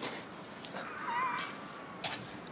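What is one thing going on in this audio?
A drunk man lets out a short, wavering cry nearby.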